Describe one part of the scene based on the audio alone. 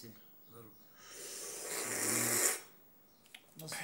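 A man slurps tea loudly.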